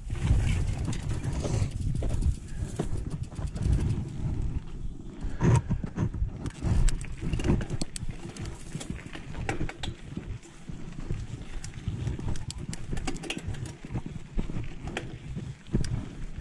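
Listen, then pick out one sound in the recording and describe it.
A mountain bike's frame and chain rattle and click over bumps.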